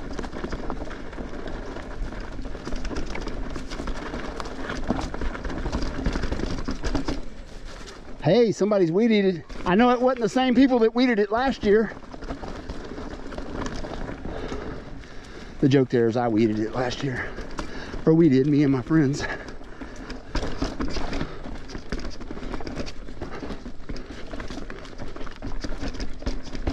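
A bicycle chain and frame rattle over bumps.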